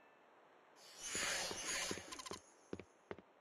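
A bright magical shimmer swells and fades as a game character vanishes.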